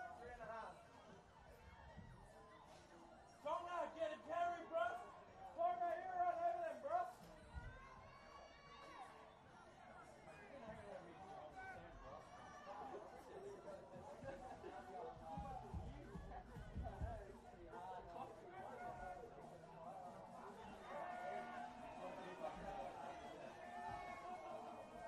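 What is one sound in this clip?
Spectators chatter and call out from the sideline.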